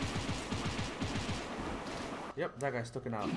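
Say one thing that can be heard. Fast clashing and crackling blasts of game combat sound rapidly.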